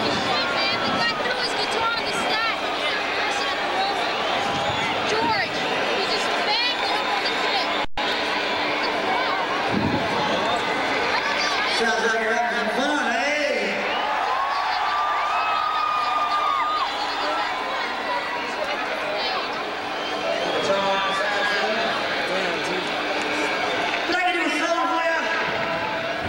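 A large crowd cheers and screams loudly outdoors.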